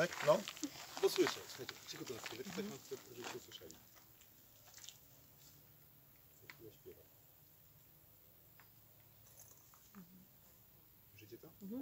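A middle-aged man speaks calmly nearby, outdoors.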